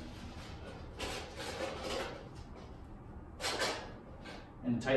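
Thin sheet metal rattles and scrapes as it is handled.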